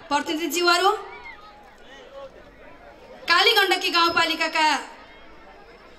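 A woman speaks forcefully into a microphone over loudspeakers, in bursts with pauses.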